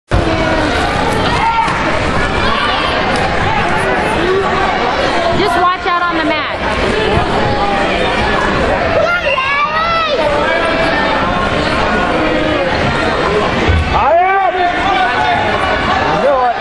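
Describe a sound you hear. A crowd of spectators talks and shouts, echoing in a large hall.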